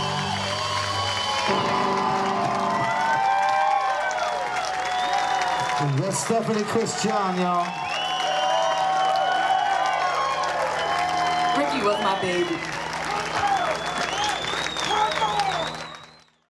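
A live band plays amplified music with electric guitars and drums.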